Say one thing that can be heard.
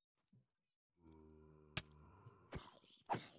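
A zombie groans close by.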